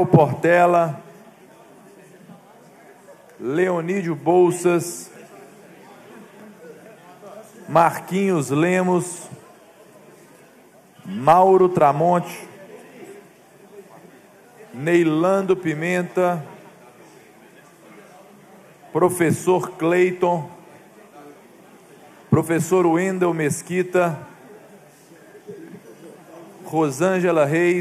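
A young man speaks calmly into a microphone in short phrases with pauses.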